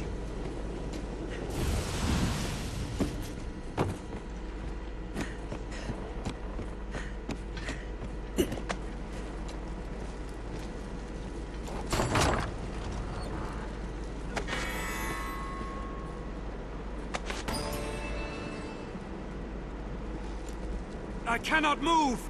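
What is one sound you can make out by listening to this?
Footsteps tread on wooden planks and stone.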